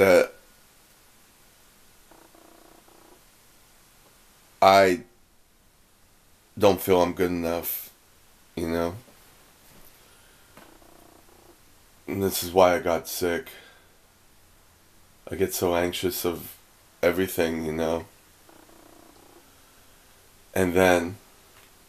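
A man speaks close by in short, relaxed bursts with pauses between.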